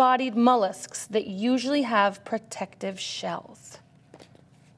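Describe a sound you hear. A woman reads aloud calmly, close to a microphone.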